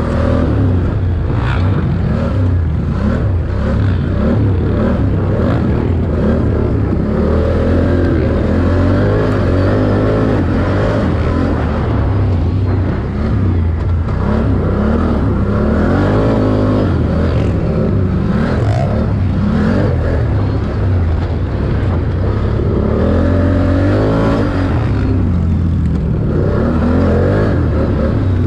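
A quad bike engine roars loudly up close, revving up and down.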